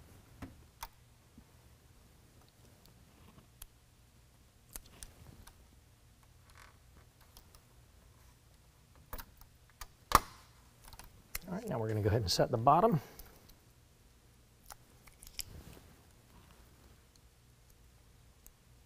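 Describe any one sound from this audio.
Plastic clips click and snap as a grille is handled.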